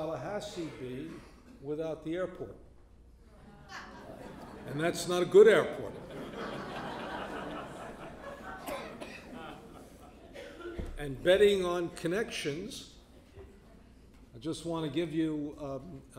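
A middle-aged man speaks with animation into a microphone, in a room with some echo.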